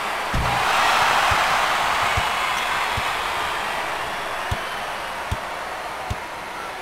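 A basketball bounces with dull thuds on a hardwood floor.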